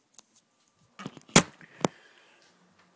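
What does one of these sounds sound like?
A man's hand knocks and fumbles against a phone right up close.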